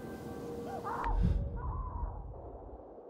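A low whoosh sounds as a map opens.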